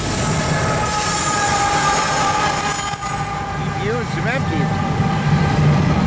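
A locomotive engine drones as it passes.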